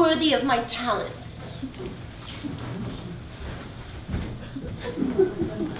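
A woman speaks loudly and expressively in an echoing hall.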